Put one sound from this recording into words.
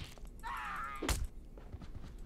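A body thuds onto a stone floor.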